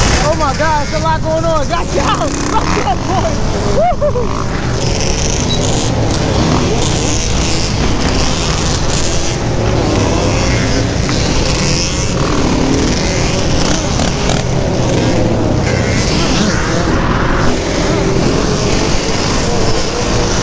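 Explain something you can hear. Quad and dirt bike engines roar steadily while riding.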